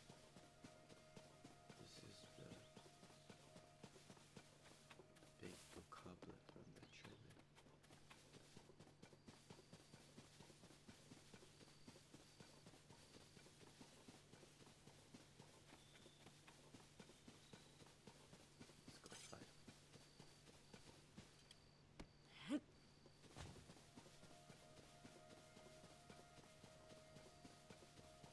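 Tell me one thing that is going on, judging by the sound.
Footsteps swish quickly through tall grass.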